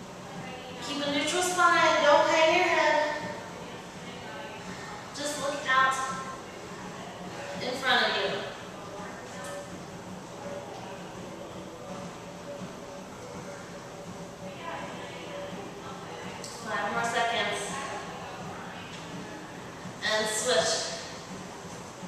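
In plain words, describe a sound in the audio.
A woman speaks calmly, giving instructions in a room with a slight echo.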